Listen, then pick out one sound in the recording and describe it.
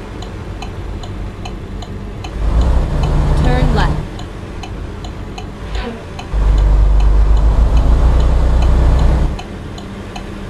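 A truck engine rumbles steadily and grows louder as it speeds up.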